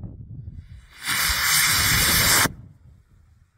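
A rocket motor roars loudly with a rushing hiss outdoors.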